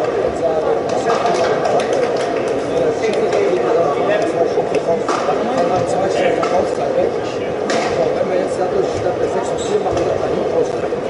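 Shuttlecocks are struck with rackets in sharp pops.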